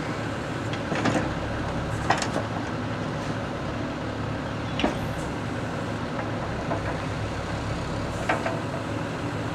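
Hydraulics clunk and knock as an excavator boom moves.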